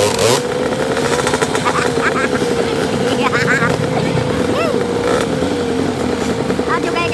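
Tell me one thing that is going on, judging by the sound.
A dirt bike engine revs loudly and strains close by.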